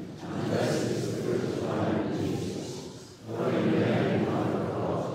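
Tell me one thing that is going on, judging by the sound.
A group of men and women sing together in a large echoing hall.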